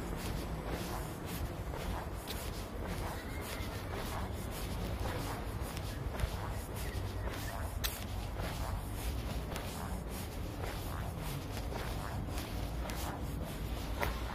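Footsteps tap steadily on pavement outdoors.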